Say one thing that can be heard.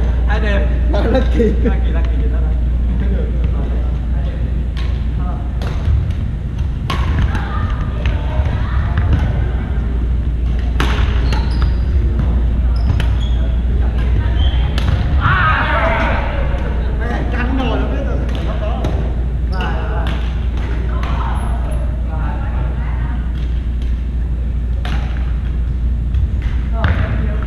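A ball smacks against paddles and the floor.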